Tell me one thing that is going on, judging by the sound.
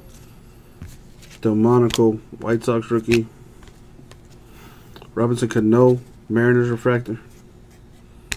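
Trading cards slide against each other in a hand.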